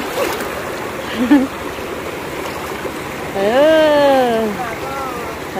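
A shallow stream rushes and gurgles over rocks close by.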